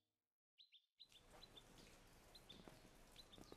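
Water sprays from a garden hose with a steady hiss.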